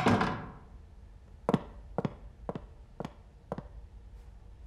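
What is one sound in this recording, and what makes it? Boots step on a hard floor as a man walks closer.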